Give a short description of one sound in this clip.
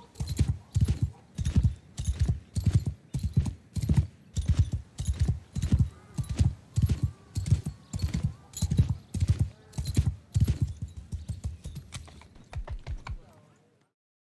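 A horse gallops with heavy, rhythmic hoofbeats.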